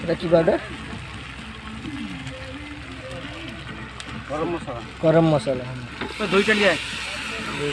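A metal spatula scrapes and stirs food in a wok.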